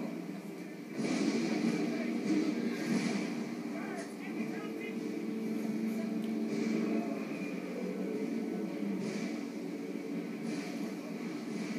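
Stone and rubble crash and rumble loudly through a small loudspeaker.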